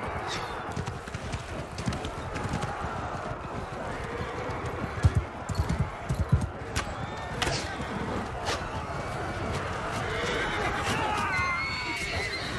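Horses splash through shallow water.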